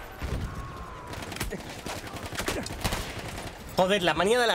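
Gunshots and explosions crack in quick bursts.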